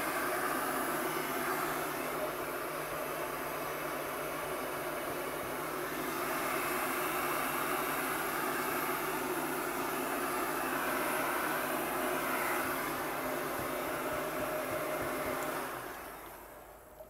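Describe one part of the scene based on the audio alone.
A heat gun blows with a steady roar.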